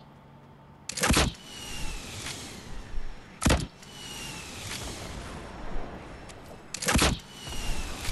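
A rocket launches with a whoosh.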